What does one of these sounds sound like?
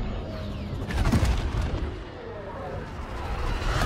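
A spacecraft engine roars with a deep rumble.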